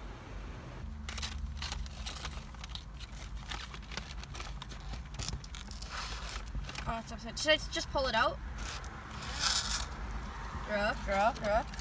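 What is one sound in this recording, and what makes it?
A cardboard box crinkles and rustles as it is opened.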